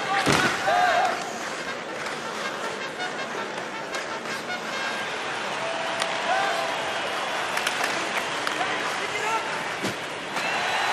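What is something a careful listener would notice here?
A hockey stick clacks against the puck.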